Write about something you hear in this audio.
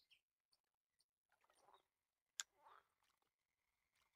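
A fishing rod swishes as a line is cast.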